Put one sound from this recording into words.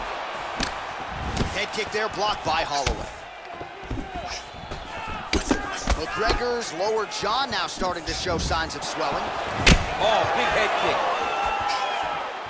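Gloved punches land with sharp thuds.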